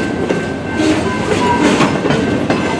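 Metal wheels squeal faintly against the rails.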